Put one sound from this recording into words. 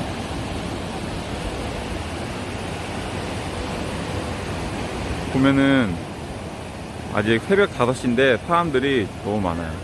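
Waves wash and break on the shore.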